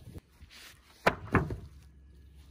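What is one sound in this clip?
A wooden frame knocks as it is dropped onto grass.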